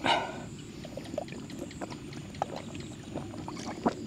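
A man gulps water from a plastic bottle.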